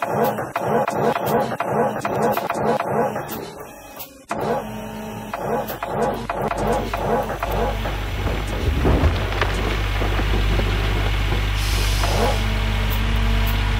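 Dirt and gravel scrape against an excavator bucket.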